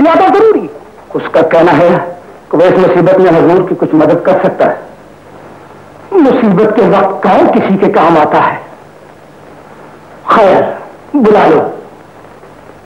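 A man speaks loudly and forcefully.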